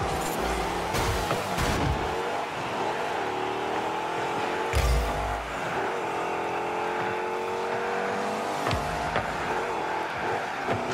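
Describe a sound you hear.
A car engine drones steadily, rising in pitch as it speeds up.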